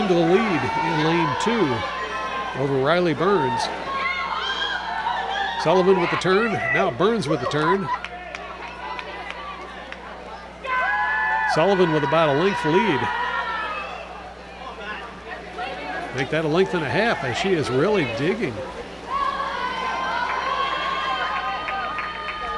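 Young people shout and cheer loudly in an echoing hall.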